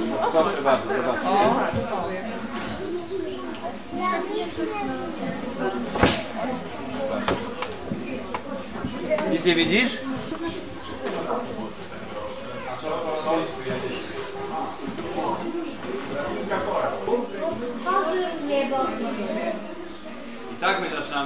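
Children chatter and murmur close by in a crowded room.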